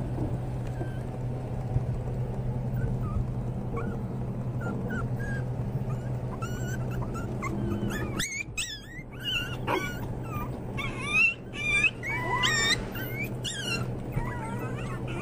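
Puppies whimper and yelp in high, squeaky cries.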